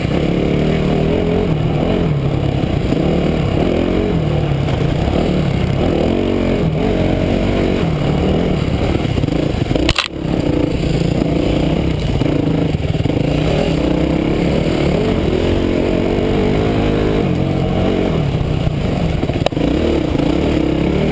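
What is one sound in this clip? A dirt bike engine revs and drones up close, rising and falling in pitch.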